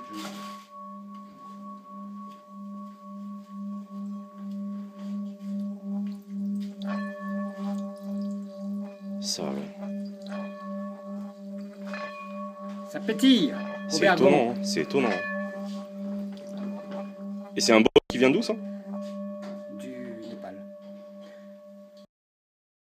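A singing bowl hums with a steady, pulsing ringing tone.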